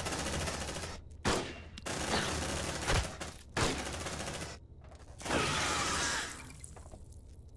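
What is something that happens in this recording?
Explosions and gunfire burst in quick succession.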